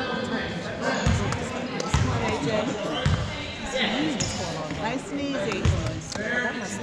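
A basketball bounces on a wooden floor with dull thumps.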